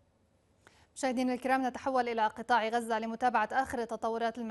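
A young woman speaks calmly and clearly into a microphone, reading out.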